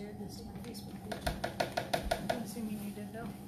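A spoon clinks rapidly against a blender jar.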